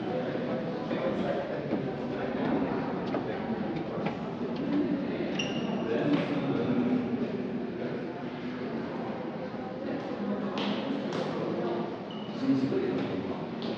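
A crowd of visitors murmurs and chatters in an echoing hall.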